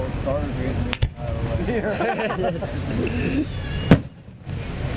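A firework bursts with a loud bang.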